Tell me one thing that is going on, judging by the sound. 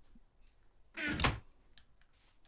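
A wooden chest thumps shut.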